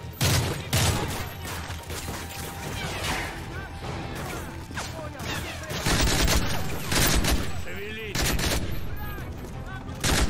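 Gunfire crackles and booms in rapid bursts.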